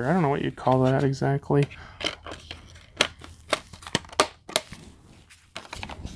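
A plastic disc case clicks and snaps as it is handled.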